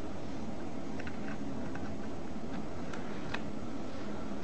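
A plug pushes into a laptop socket with a faint click.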